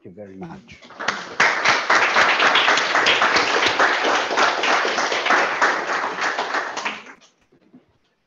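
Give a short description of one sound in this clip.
A small audience applauds.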